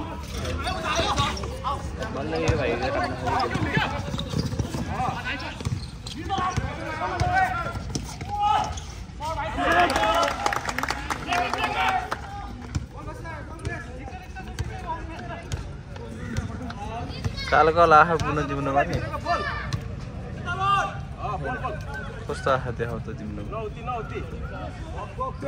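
A basketball bounces on a hard outdoor court.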